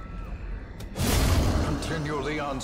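A heavy blade slashes and strikes with a loud impact.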